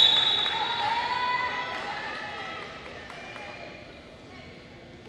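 A crowd cheers and slowly fades.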